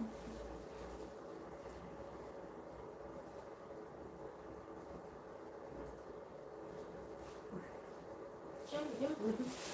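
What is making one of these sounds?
A towel rubs and rustles against wet hair.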